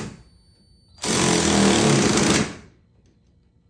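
A cordless drill whirs as it drives in a bolt.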